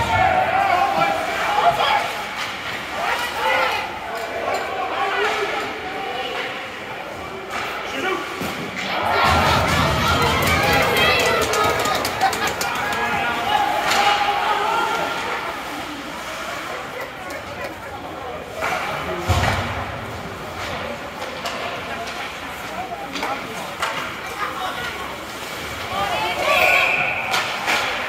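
Hockey sticks clack against a puck and each other.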